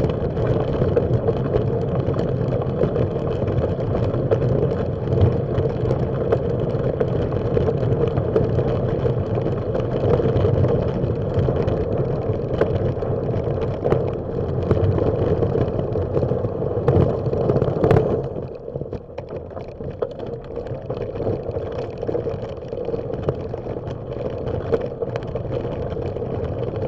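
Bicycle tyres crunch on gravel.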